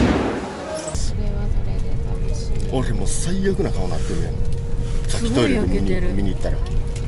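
A bus engine rumbles low from inside the cabin while driving.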